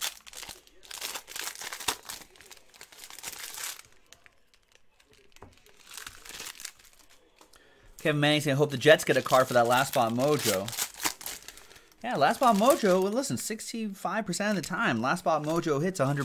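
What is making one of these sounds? Foil packs crinkle and rustle in hands.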